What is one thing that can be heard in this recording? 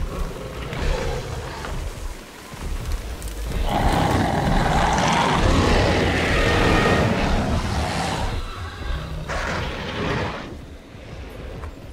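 Large creatures growl and roar.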